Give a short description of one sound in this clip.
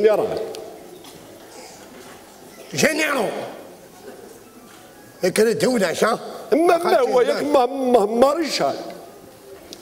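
A middle-aged man speaks loudly and with animation through a microphone.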